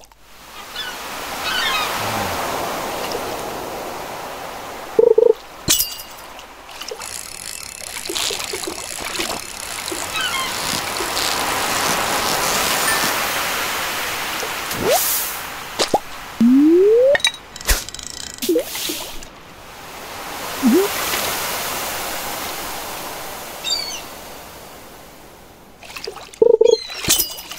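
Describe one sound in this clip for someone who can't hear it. Gentle waves wash and lap steadily.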